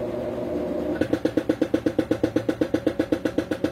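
A washing machine drum thumps in a fast, even rhythm.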